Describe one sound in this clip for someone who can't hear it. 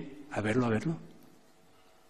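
An elderly man speaks briefly and calmly into a microphone.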